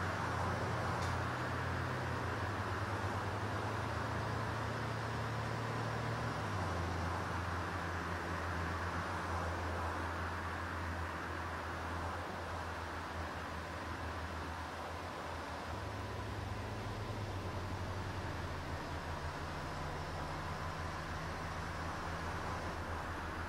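A bus engine idles steadily.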